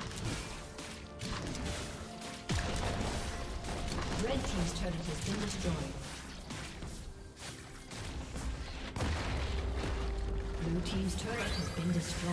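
Video game combat effects crackle, whoosh and clash.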